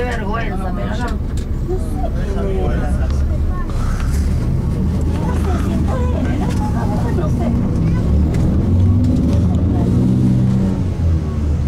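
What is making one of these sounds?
City traffic rumbles steadily by on a wide street.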